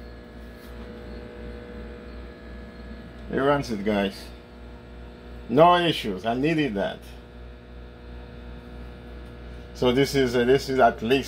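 A microwave oven hums steadily as it runs.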